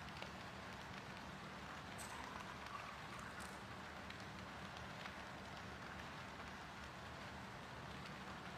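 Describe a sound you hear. A fire crackles in a hearth.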